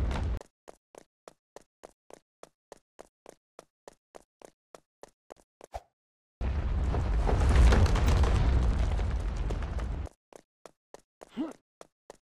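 Quick footsteps patter steadily on a hard floor.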